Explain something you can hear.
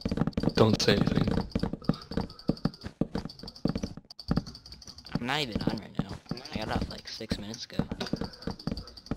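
Wooden blocks crunch and break in quick succession.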